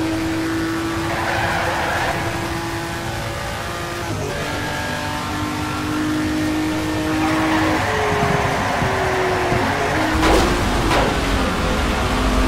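Tyres squeal on tarmac through the corners.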